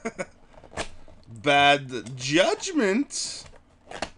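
A cardboard sleeve slides off a box with a soft scrape.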